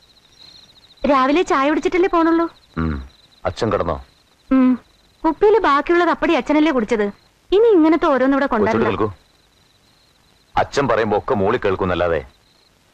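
A woman speaks with feeling, close by, in short bursts.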